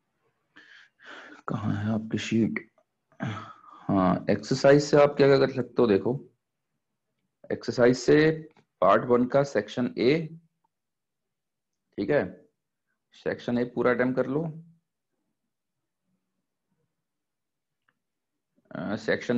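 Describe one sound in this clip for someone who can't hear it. A man lectures, pausing between phrases.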